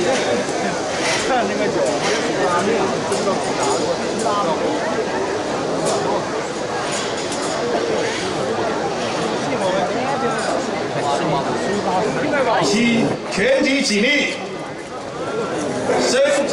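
A large crowd chatters outdoors, close by.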